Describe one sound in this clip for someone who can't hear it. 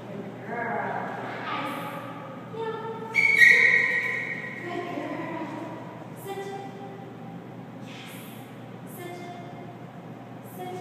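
A woman speaks calmly to dogs in an echoing room.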